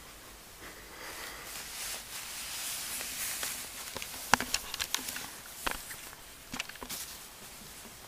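Fabric rustles and crumples close by as a small animal moves across it.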